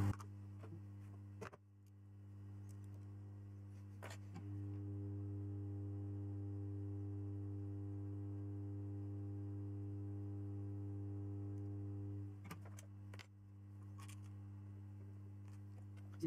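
Hands handle a circuit board with light clicks and knocks.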